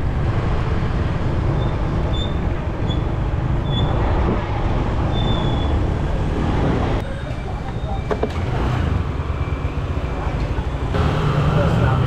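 A motorbike engine rumbles steadily.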